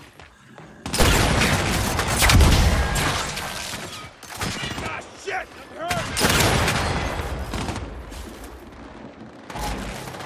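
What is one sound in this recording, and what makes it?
Heavy rifle shots fire in loud, echoing bursts.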